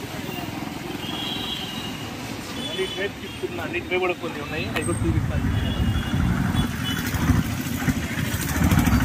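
Traffic rumbles steadily on a busy street outdoors.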